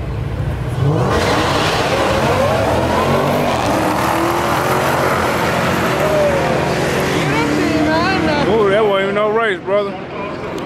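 Two cars roar off at full throttle and fade into the distance.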